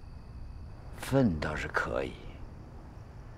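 An elderly man answers in a low, quiet voice close by.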